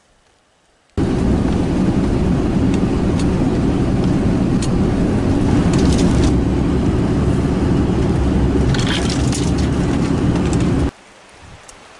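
Tyres crunch over packed snow.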